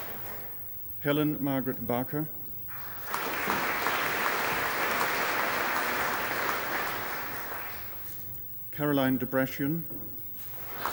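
A man reads out through a microphone in an echoing hall.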